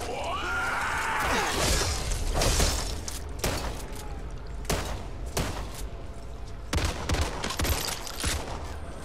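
Heavy melee blows thud into bodies.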